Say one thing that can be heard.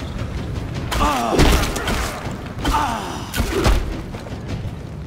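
A wooden club thuds against a furry beast.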